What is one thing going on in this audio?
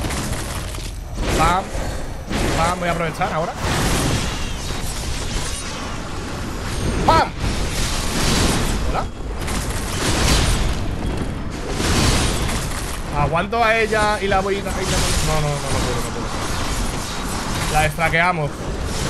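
Blades swish and clash in a fight.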